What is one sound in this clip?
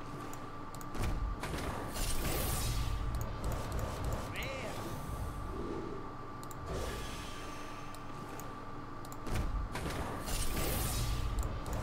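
A magical burst booms and shimmers as a card pack opens.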